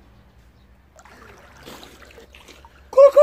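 Water splashes as a young man comes up from underwater.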